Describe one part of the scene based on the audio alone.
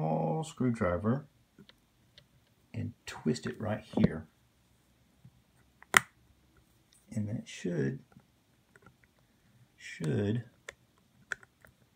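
A small screwdriver clicks and scrapes against a plastic case.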